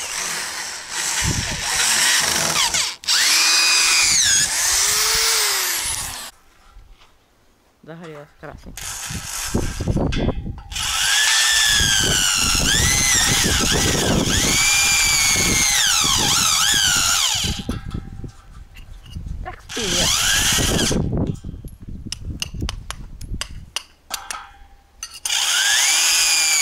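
A cordless drill whines, speeding up and slowing down in bursts.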